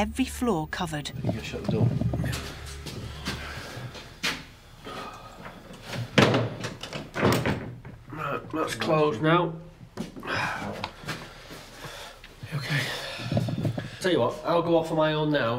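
A middle-aged man talks close by in a low voice.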